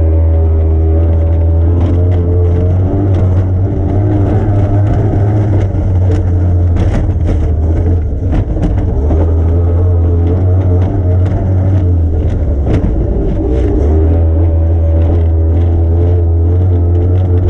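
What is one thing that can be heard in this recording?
Spray and waves slap hard against a boat's hull and canopy.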